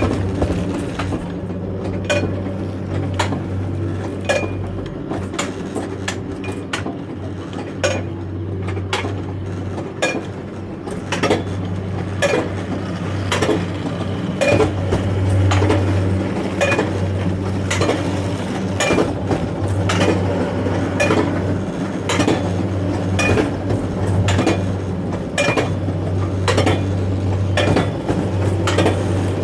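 A lift chain hums and rumbles steadily beneath a cart.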